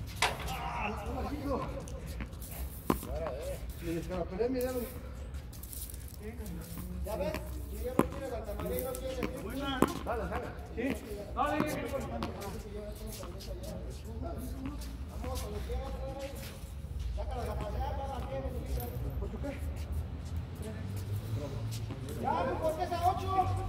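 Men call out to each other during a game, heard from a distance.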